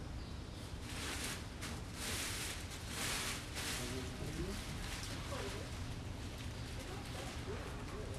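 A plastic sheet rustles and crinkles as it is handled.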